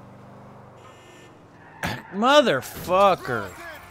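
A car crashes into another car with a thud.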